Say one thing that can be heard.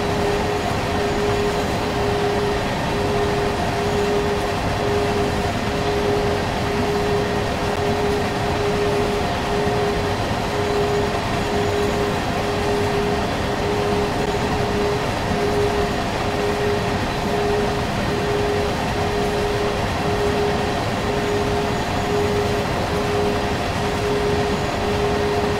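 An electric locomotive hums steadily as it rolls along.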